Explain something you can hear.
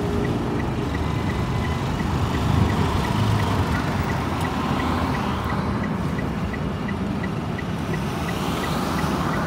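Cars pass by on the road.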